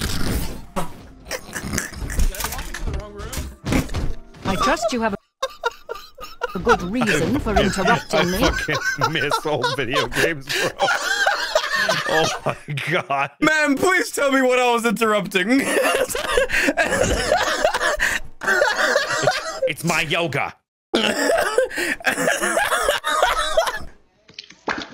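A young man laughs and talks with animation into a microphone.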